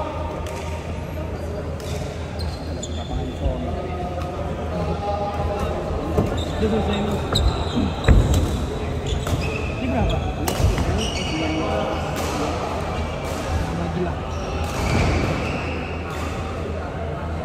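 Shuttlecocks are struck with rackets, with sharp pops echoing in a large hall.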